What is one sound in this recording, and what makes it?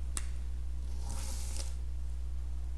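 Dice clatter onto a table.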